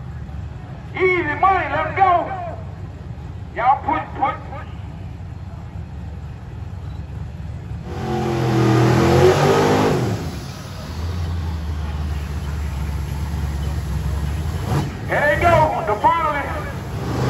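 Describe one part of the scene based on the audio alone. A man shouts nearby outdoors.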